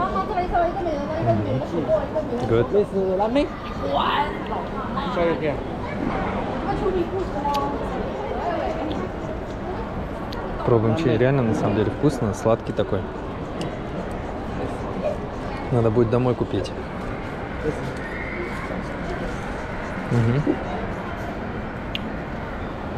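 A crowd murmurs in the background of a busy street.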